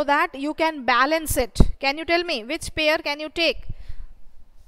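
A woman speaks with animation, close through a headset microphone.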